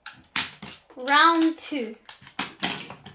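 A toy launcher whirs as its rip cord is pulled.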